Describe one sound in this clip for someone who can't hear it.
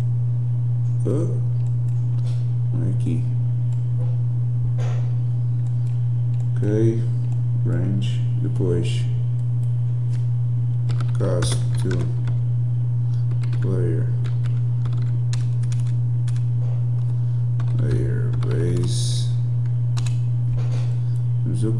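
A man talks calmly into a close microphone, in short phrases with pauses.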